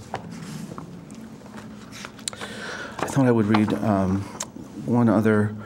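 A middle-aged man speaks calmly into a microphone, reading out.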